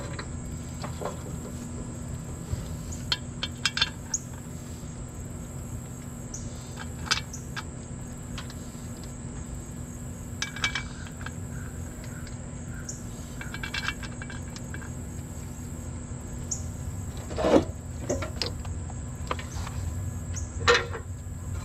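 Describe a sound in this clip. Metal tools clink and scrape against metal parts.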